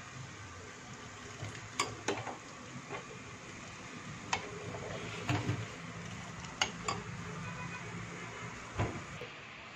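Liquid bubbles and boils in a pot.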